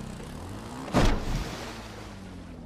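Something splashes into water.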